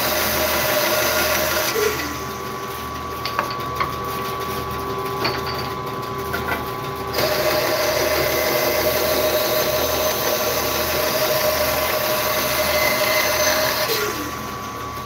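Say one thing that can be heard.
A band saw blade cuts through wood with a loud rasping whine.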